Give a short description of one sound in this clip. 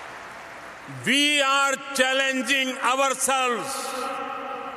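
An elderly man speaks loudly through a microphone.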